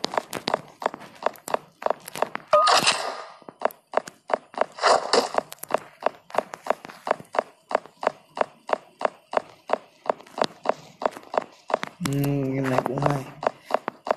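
Footsteps clank quickly on metal walkways.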